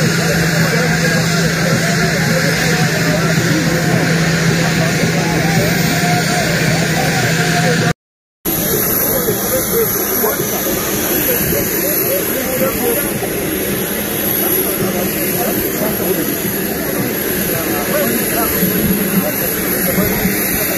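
A crowd of men and women chatter outdoors close by.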